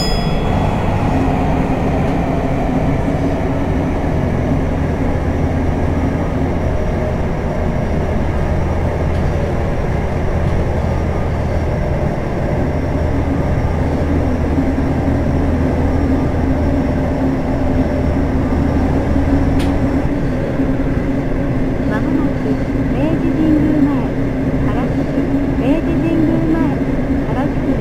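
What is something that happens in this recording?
A train's motor hums steadily as it runs through a tunnel.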